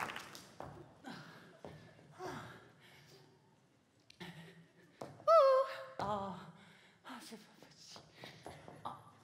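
A woman makes expressive vocal sounds on a stage.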